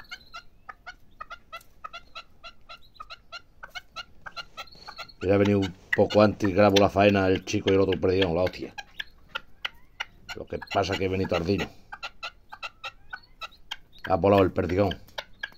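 A partridge clucks softly in quick, steady ticks.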